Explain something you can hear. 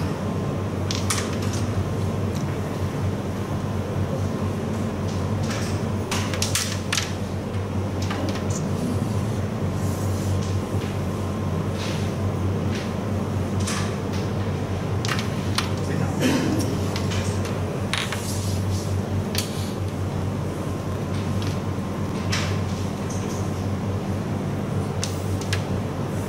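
Wooden game pieces click sharply against each other on a board.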